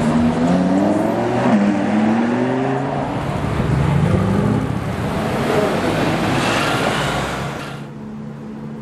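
A sports car engine revs loudly, rising and falling in pitch.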